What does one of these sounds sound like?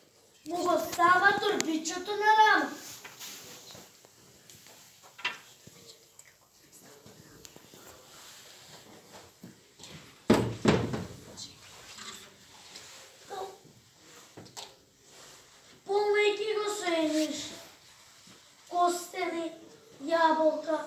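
Young children sing together.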